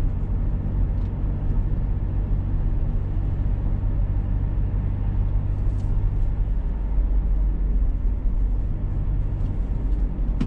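Tyres rumble on a wet road.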